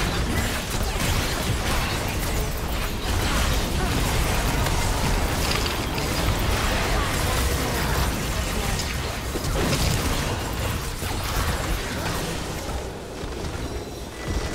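Magic spells crackle and blast in a busy game battle.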